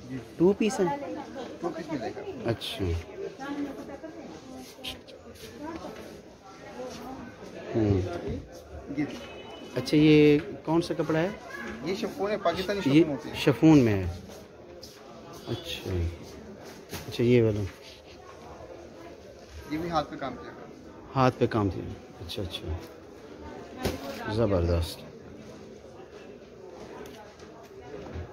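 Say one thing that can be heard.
Cloth rustles as fabric is unfolded and shaken.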